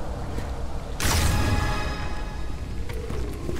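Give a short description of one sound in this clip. A short chime rings out.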